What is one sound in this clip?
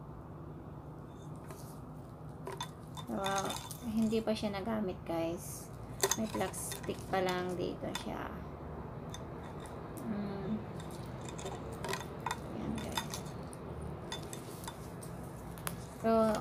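A metal watch band clinks and rattles in hands.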